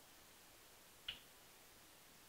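A metal vise clicks sharply as it is turned.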